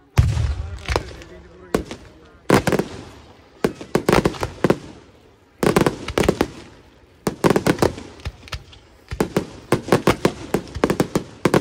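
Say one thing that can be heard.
Firework shots bang and pop in quick bursts, echoing across open ground.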